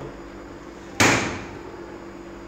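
A cabinet door bangs shut.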